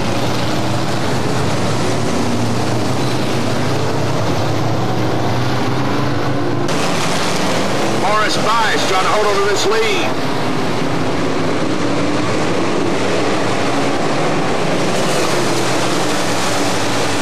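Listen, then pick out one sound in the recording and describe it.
Race car engines roar loudly as the cars circle a dirt track.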